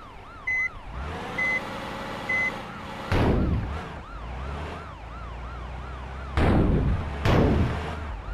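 A diesel engine rumbles and revs.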